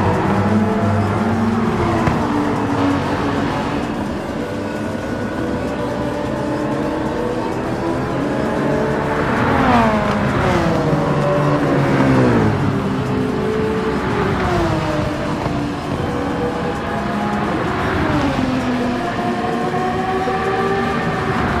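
Racing car engines roar throughout.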